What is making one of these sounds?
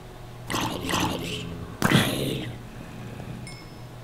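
A creature grunts as it is struck.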